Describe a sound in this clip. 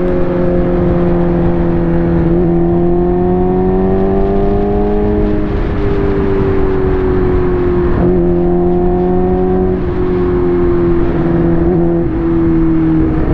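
A motorcycle engine hums steadily, rising and falling in pitch as the rider shifts gears.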